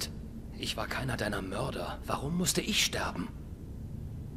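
A man speaks tensely in a low voice, close by.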